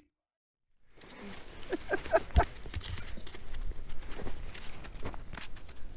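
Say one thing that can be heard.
A fish flops and slaps on ice.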